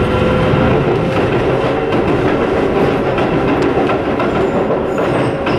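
A train rumbles past on the tracks close by.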